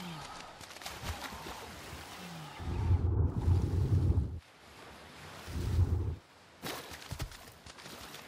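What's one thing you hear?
Water splashes as a person swims.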